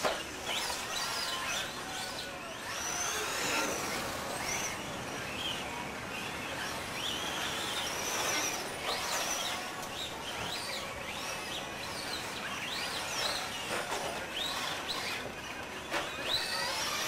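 A small electric motor whines and revs up and down as a toy car races on dirt.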